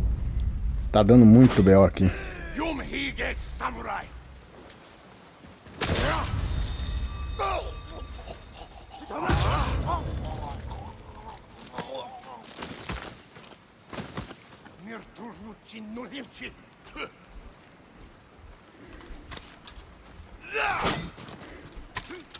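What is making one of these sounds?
Men shout and grunt as they fight.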